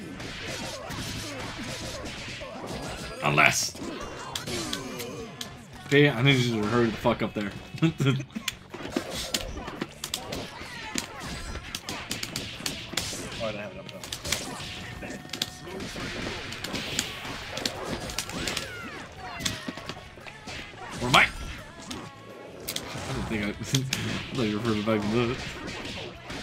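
Sharp punches and blows land in quick bursts.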